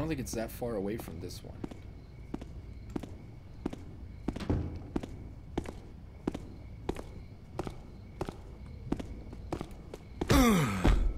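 Footsteps tap on a stone floor at a steady pace.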